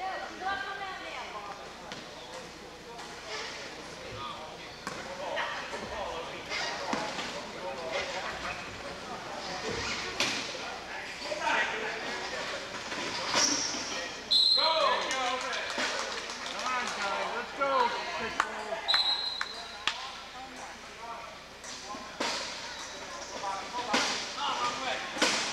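A crowd of people talk and call out in a large echoing gym.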